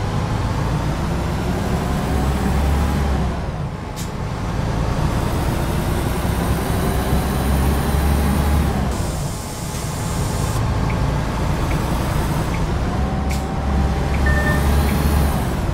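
A truck engine rumbles steadily, rising and falling as it shifts gears.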